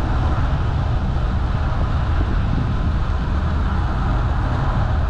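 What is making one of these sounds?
Wind rumbles and buffets against the microphone while moving along outdoors.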